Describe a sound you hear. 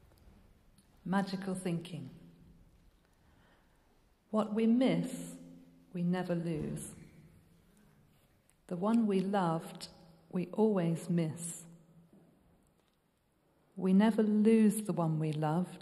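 A woman reads aloud slowly into a microphone in an echoing hall.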